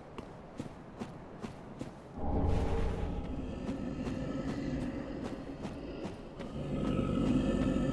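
Heavy armoured footsteps clank steadily on stone.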